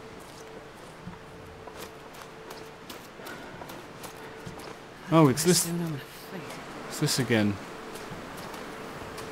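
Footsteps crunch softly in snow.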